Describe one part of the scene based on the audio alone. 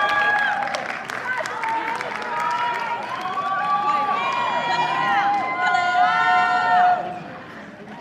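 Live music plays on stage in a large hall and stops abruptly.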